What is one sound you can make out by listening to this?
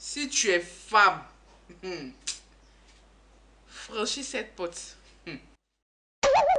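A woman speaks in an annoyed tone.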